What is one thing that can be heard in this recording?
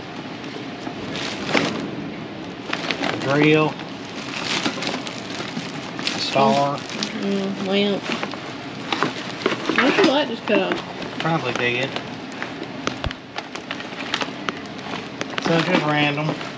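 Loose items clatter softly as they are moved.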